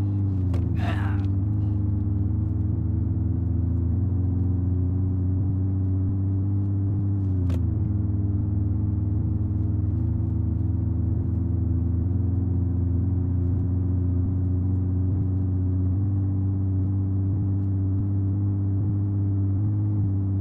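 A car engine hums steadily as the car speeds up.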